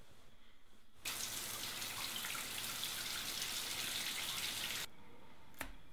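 Water sprays steadily from a shower head.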